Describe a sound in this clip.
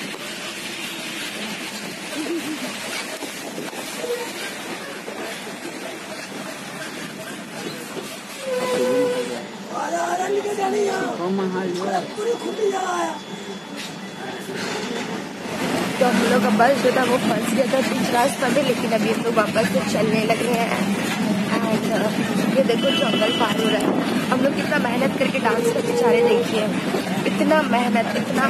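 A bus engine rumbles steadily while driving.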